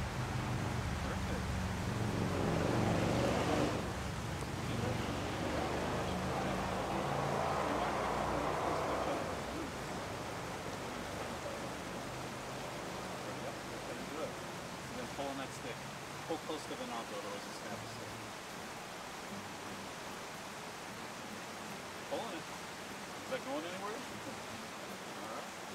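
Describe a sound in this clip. A stream rushes steadily nearby.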